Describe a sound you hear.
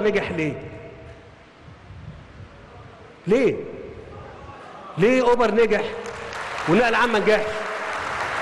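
A man speaks with emphasis into a microphone in a large hall.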